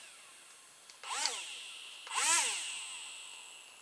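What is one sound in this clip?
A small electric motor whirs up and winds down in short bursts.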